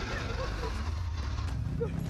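A young man shouts close by.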